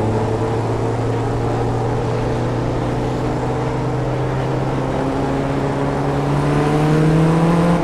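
A racing car engine drones loudly, its pitch dipping and then rising as it speeds up.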